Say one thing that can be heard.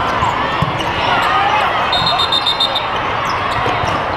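A volleyball is struck hard with a slap.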